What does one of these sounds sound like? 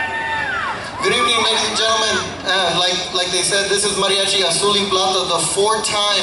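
A man sings loudly through a microphone.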